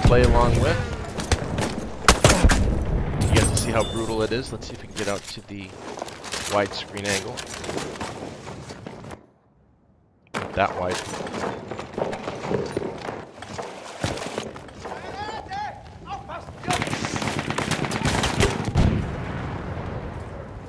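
Rifle shots crack sharply, again and again.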